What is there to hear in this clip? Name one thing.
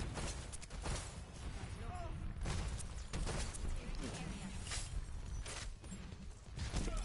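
A weapon fires in rapid bursts, with sharp blasts.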